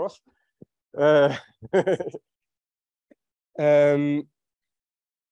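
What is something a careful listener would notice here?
A man speaks slowly and thoughtfully through a microphone, with pauses.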